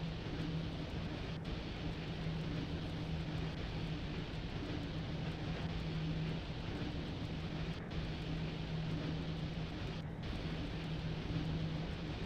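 An electric locomotive hums and rumbles steadily as it rolls along the rails.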